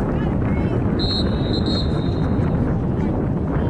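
A referee's whistle blows once, sharply.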